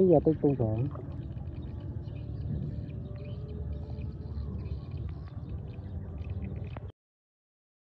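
Fish gulp and slurp at the water's surface.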